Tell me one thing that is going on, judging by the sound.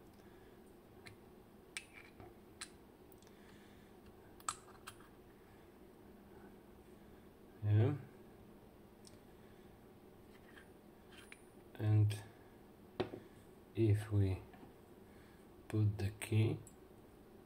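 Small metal parts of a lock click and tap as it is handled.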